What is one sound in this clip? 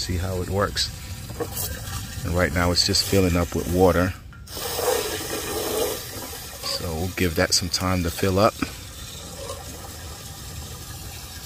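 Water from a hose runs and gurgles into a hollow drum.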